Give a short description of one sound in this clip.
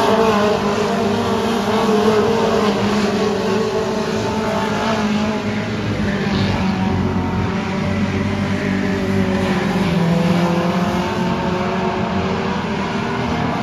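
Race car engines roar loudly and steadily nearby.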